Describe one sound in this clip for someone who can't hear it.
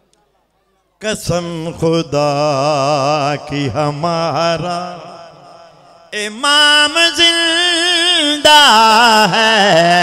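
A middle-aged man chants loudly and passionately through an echoing loudspeaker microphone.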